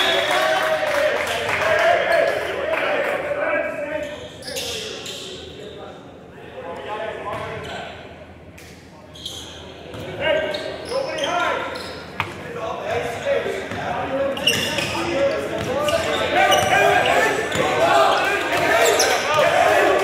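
Young men call out to each other across an echoing gym.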